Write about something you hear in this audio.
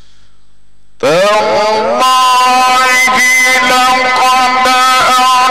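A man chants loudly into a microphone, his voice ringing through a loudspeaker.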